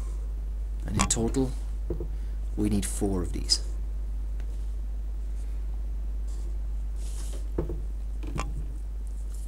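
Plastic rulers knock and slide on a desk.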